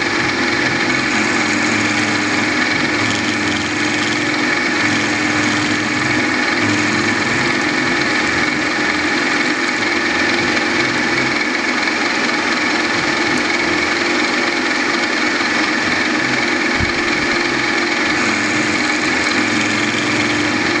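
A cutter grinds into metal.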